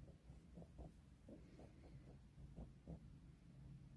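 Fingers rub cream into skin softly.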